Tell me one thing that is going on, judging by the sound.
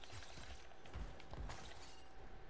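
An explosion booms with a deep thud.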